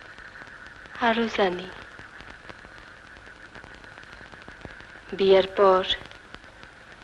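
A woman speaks in short bursts nearby.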